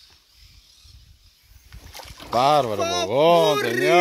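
Water splashes as a fish is landed in a net.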